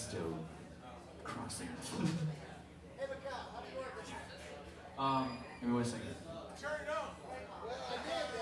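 A man speaks into a microphone, heard over loudspeakers in a large room.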